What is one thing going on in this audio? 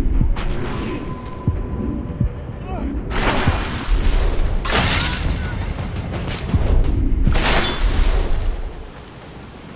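A sword strikes in a fight with heavy thuds and clashes.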